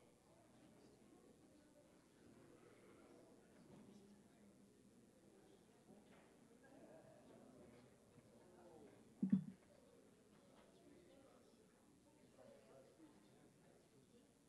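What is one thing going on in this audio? A crowd of men and women chat and murmur all around in a large room.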